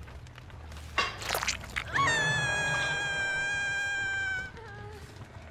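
A young woman screams in pain.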